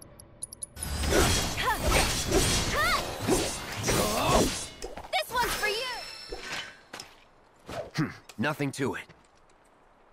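A sword slashes and strikes with sharp, crackling impacts.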